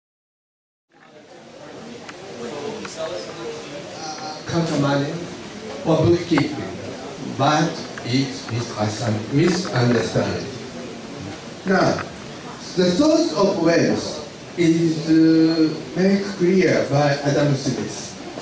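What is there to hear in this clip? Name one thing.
A man speaks into a microphone, heard over loudspeakers.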